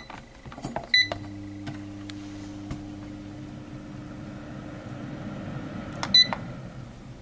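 A fan hums steadily inside an appliance and then winds down.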